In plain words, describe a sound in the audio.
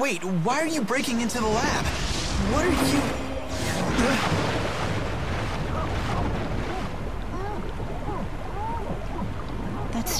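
A magical blast whooshes and roars.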